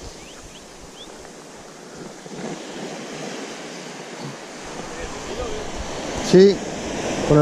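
Small waves wash gently over sand close by.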